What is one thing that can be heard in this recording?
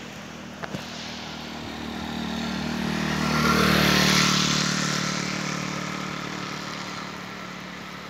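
A motorcycle engine approaches, roars past close by and fades away.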